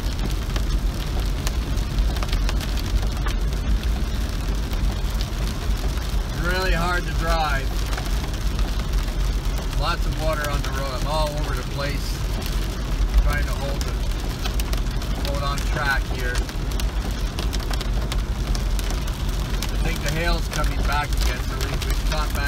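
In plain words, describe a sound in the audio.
A car engine hums low as the car drives.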